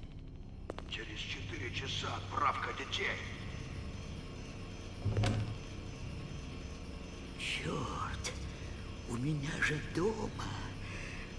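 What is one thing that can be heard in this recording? A man speaks quietly, muttering to himself.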